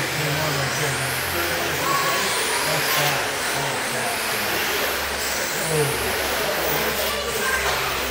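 Small electric racing cars whine at high speed as they whizz past close by.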